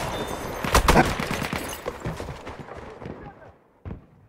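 Gunfire and explosions boom close by, then fade.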